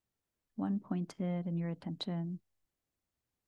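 A woman speaks softly and calmly into a microphone.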